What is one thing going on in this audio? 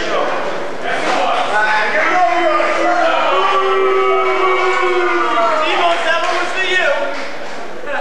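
A young man shouts taunts nearby.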